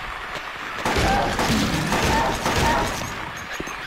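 Gunshots bang loudly and echo.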